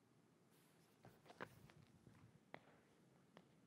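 Shoes shuffle and step on a hard stage floor.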